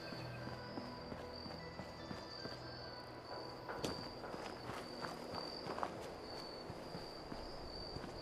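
Footsteps crunch over dry ground.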